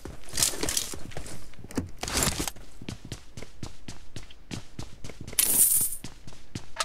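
Footsteps thud quickly and evenly on a wooden floor.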